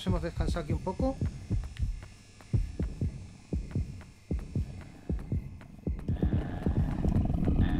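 Footsteps thud steadily at a walking pace.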